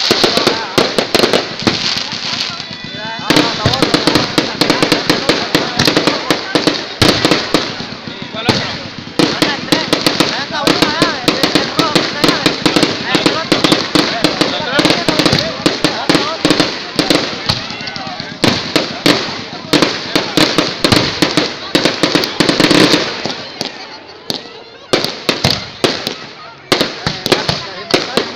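Fireworks fizz and hiss as sparks spray.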